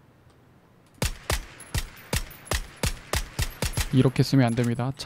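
Rifle shots fire in a rapid series.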